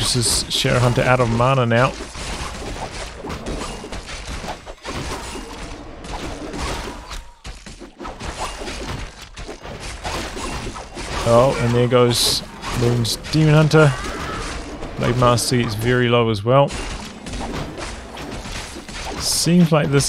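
Weapons clash and clang in a busy battle.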